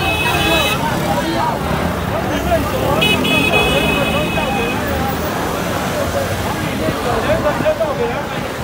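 A large outdoor crowd of men and women chants and shouts loudly, close by.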